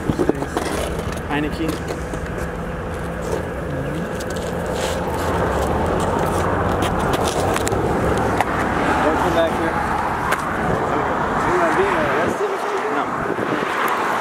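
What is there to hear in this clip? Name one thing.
Young men talk with animation nearby, outdoors.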